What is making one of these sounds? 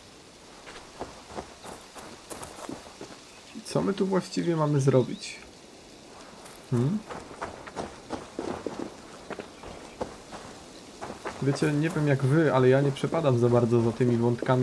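Footsteps run over dry grass and leaves.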